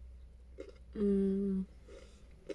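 A young woman hums with pleasure.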